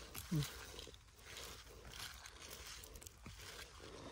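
Dry moss and twigs rustle under gloved hands.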